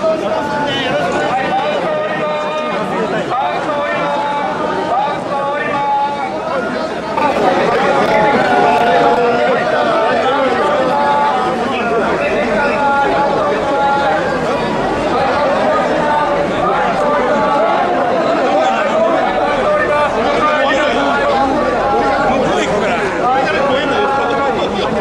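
A large crowd of men chant loudly in rhythm close by.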